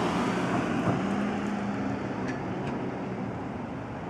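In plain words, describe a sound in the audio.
A man talks calmly at a distance outdoors.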